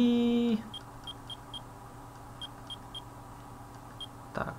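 Short electronic menu beeps tick quickly, one after another.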